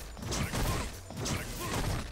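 An energy blast whooshes loudly.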